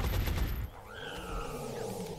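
An explosion booms and debris scatters.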